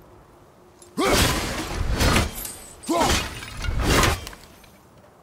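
An axe swings through the air with heavy whooshes.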